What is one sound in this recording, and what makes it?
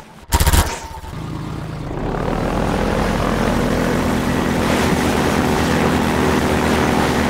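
An engine idles with a low steady hum.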